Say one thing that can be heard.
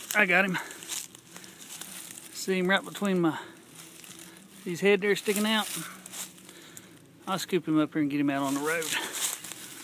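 A rake scrapes and rustles through dry leaves on the ground.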